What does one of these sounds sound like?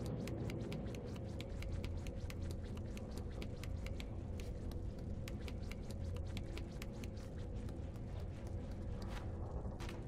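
Small footsteps patter quickly across a hard floor.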